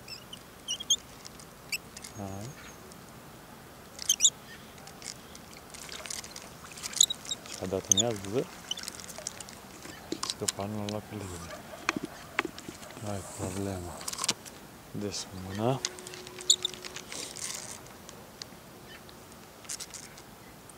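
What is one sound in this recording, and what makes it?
Small fish splash softly at the surface of still water.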